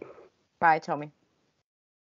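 A woman speaks briefly and brightly over an online call.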